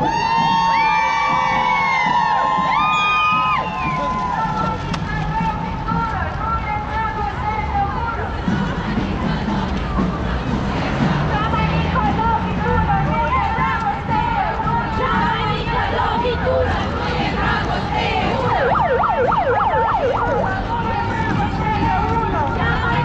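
A large crowd of marchers chants and talks loudly outdoors.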